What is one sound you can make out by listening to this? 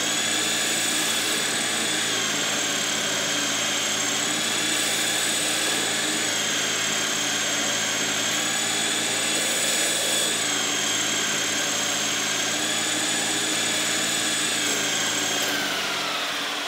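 A metal lathe spins with a steady, high whine.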